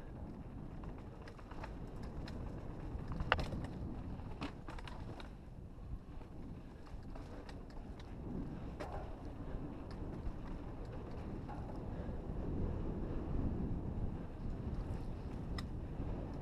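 Bike tyres roll and crunch over a dirt trail.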